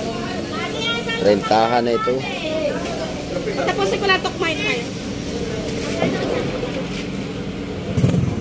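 A plastic bag rustles as fish are pulled out.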